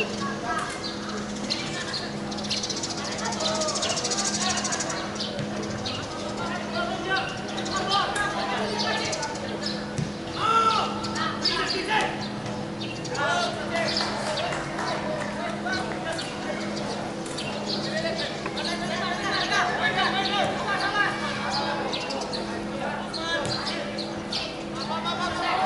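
Young men shout to each other from a distance in the open air.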